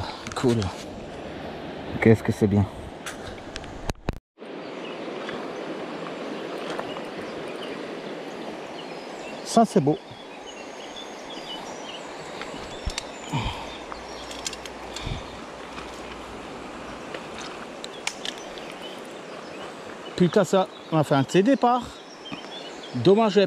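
A shallow stream flows and babbles over stones.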